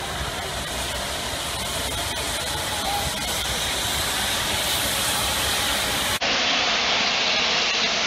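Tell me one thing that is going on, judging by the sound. A steam locomotive chuffs as it approaches.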